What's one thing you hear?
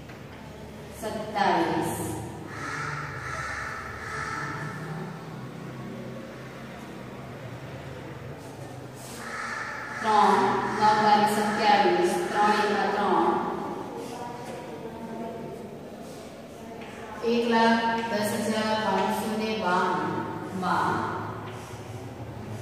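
A woman speaks calmly, as if explaining, close by.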